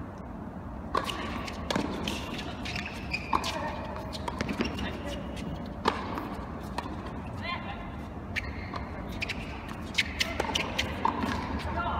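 Tennis rackets strike a ball back and forth in a large echoing hall.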